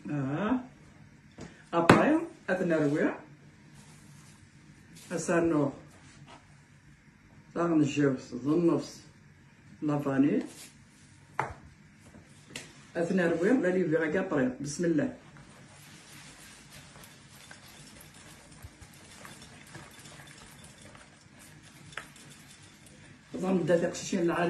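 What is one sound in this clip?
An elderly woman talks calmly and close by, in short bursts.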